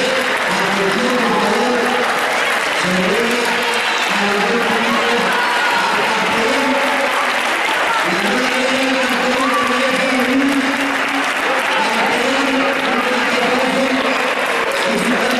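A crowd of men and women sings together loudly, close by.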